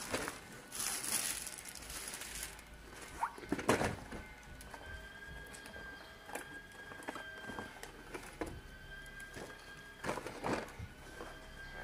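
Cardboard and plastic packaging rustle and crinkle as a child handles a toy box.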